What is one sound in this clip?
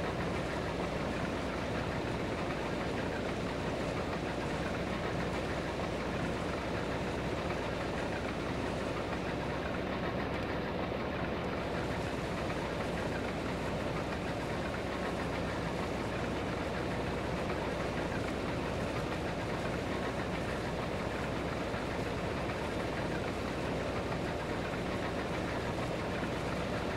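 A combine harvester engine drones steadily from inside the cab.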